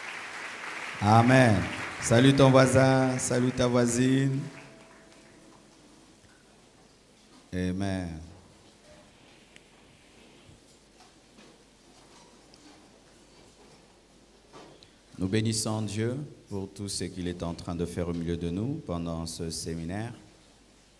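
A man speaks through a microphone in a large echoing hall, preaching with feeling.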